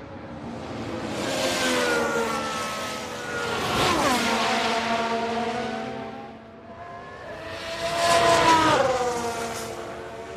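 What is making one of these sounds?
A racing car roars past up close, its engine pitch dropping as it goes by.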